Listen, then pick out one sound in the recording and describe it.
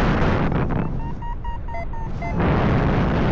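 An electronic flight instrument beeps in quick, rising bursts.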